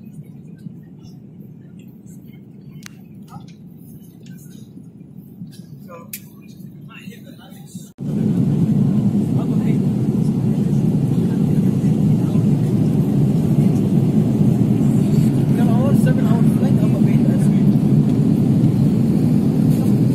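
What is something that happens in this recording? Jet engines drone with a steady low roar inside an aircraft cabin.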